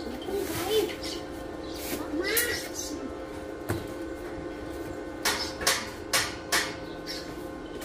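Tools clank and tap against a metal railing.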